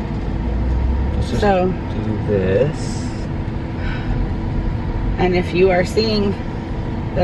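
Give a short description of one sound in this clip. A car's engine and road noise hum steadily inside the cabin.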